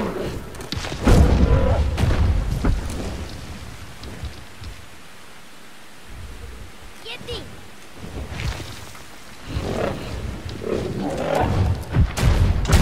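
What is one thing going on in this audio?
Heavy thuds and scrapes sound as a large creature climbs stone walls.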